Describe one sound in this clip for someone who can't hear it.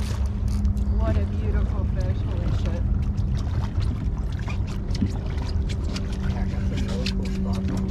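Small waves lap and splash against a boat's hull.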